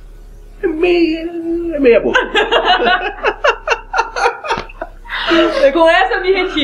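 A young woman laughs loudly and close by.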